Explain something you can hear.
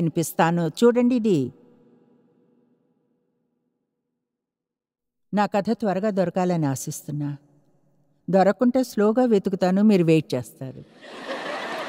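A middle-aged woman reads aloud calmly into a microphone, with pauses.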